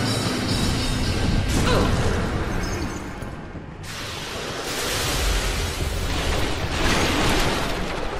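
Electric magic crackles and hums.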